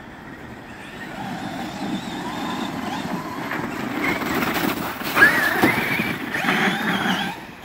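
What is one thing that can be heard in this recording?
Small electric motors whine, rising and falling as toy cars race closer.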